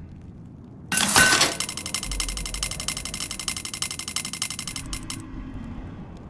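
A bright, ringing game chime plays as a treasure chest opens.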